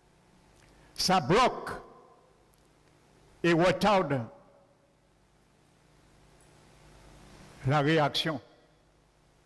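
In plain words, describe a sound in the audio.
A man preaches with emphasis over a microphone in short bursts.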